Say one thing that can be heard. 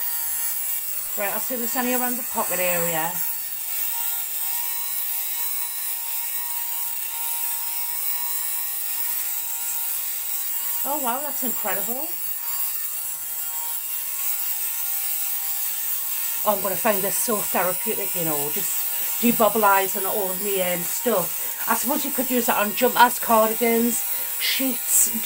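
A small electric fabric shaver hums steadily.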